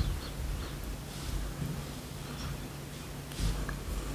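A young woman sniffs a small bottle.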